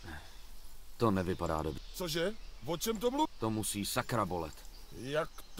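A young man asks a question in surprise.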